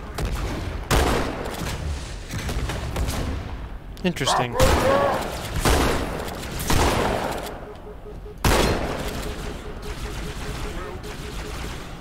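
Gunshots fire with loud blasts.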